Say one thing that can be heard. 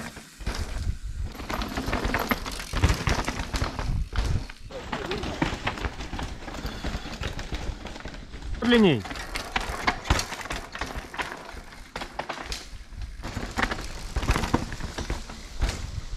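Mountain bike tyres rumble and crunch over a dirt trail.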